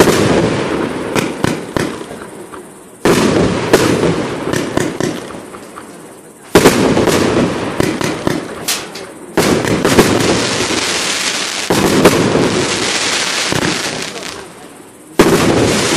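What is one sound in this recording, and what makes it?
Fireworks burst with loud booms, one after another.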